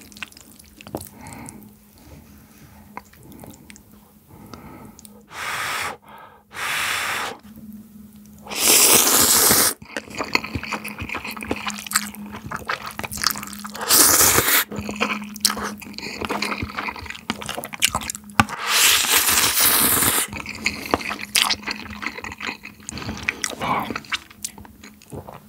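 A fork clinks against a bowl.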